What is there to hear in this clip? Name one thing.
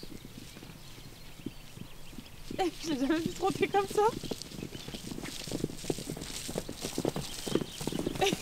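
A horse's hooves thud on grass as it gallops.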